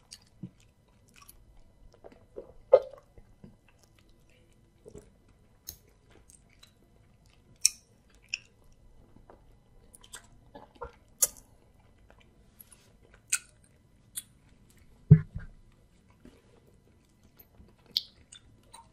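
Wet food squelches as fingers squeeze it up close.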